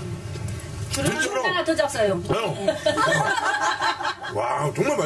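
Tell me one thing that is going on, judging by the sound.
Elderly women laugh loudly together.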